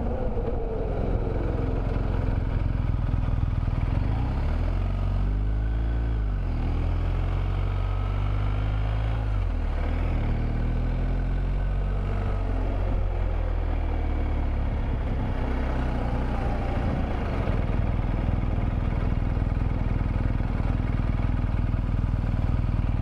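A motorcycle engine hums and its pitch rises and falls as it speeds up and slows down.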